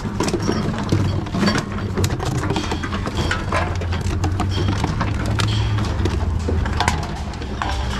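Glass bottles clink and clatter against each other.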